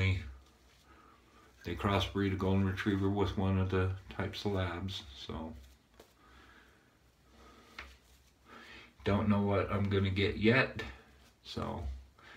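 A shaving brush swishes lather over stubble.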